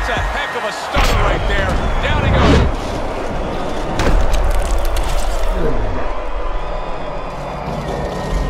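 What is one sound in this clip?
Gloved punches land with heavy thuds.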